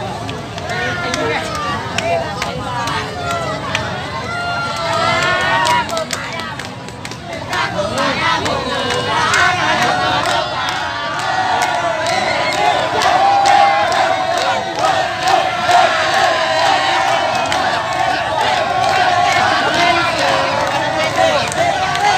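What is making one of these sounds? A large crowd of men and women talks and shouts outdoors.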